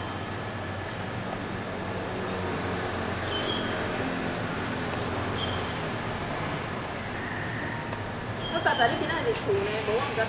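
A crowd of men and women murmurs in the background outdoors.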